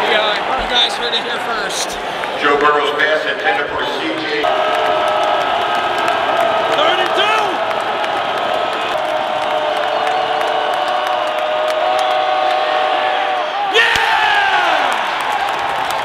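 A large stadium crowd roars and cheers, echoing around the arena.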